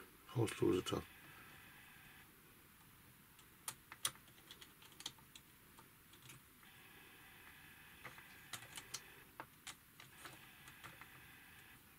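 Small plastic parts click and tap together close by.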